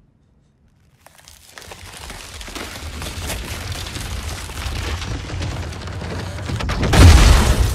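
Ice crackles and creaks as it spreads over a door.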